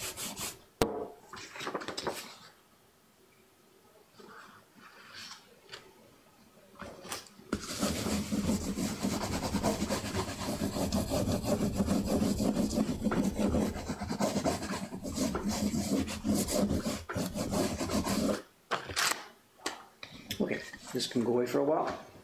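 Paper rustles as a sheet is laid down and lifted.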